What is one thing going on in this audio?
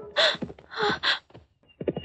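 A woman speaks pleadingly, close by.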